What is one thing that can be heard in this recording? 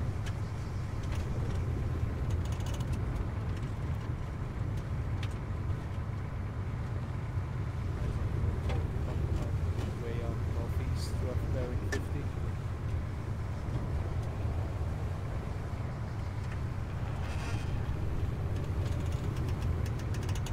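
A vehicle engine rumbles steadily and low.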